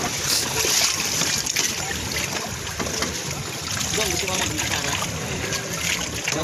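Water splashes as children swim close by.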